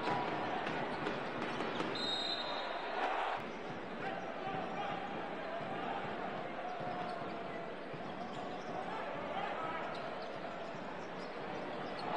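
A crowd cheers and roars in a large indoor arena.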